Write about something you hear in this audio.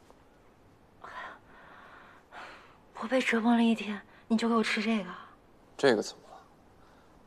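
A young woman speaks quietly and wearily nearby.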